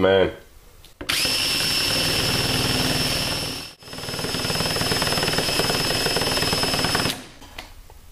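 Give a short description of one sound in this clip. A cordless drill whirs steadily at high speed, pausing briefly once.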